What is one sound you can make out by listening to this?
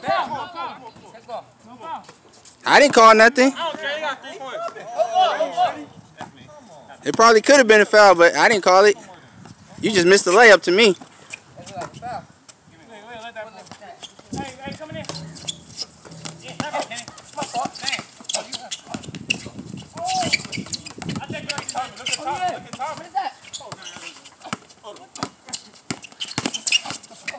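A basketball bounces on a court outdoors.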